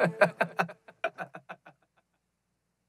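A young man raps rhythmically into a close microphone, his voice echoing and fading away.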